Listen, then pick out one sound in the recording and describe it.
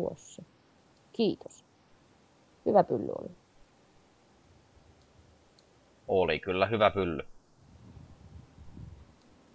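A young man talks casually into a nearby microphone, in short bursts.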